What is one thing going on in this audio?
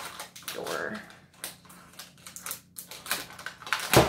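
A paper ribbon rustles and crinkles.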